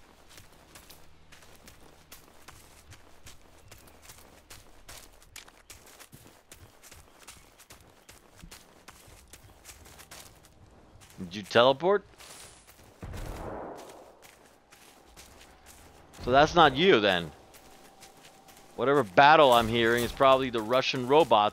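Footsteps rustle through dry grass and leaves.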